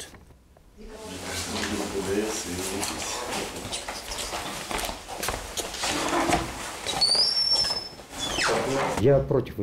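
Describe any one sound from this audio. People talk and move around in an echoing room.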